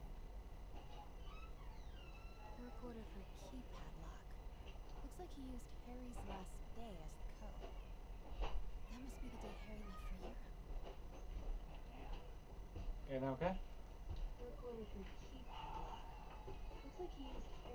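A young woman talks casually into a microphone, close by.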